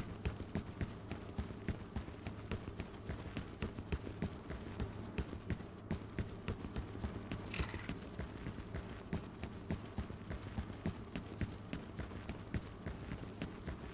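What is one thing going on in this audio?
Heavy boots thud in quick, steady footsteps on a hard floor.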